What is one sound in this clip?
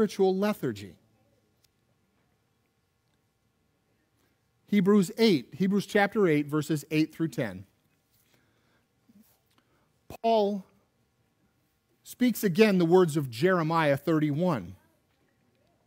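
A man preaches with animation through a microphone, in short bursts with pauses.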